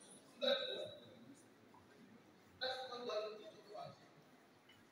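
A man speaks over a loudspeaker in a large echoing hall.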